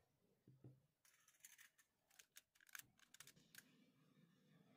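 Foil crinkles as it is handled.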